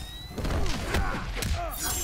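Ice cracks and shatters.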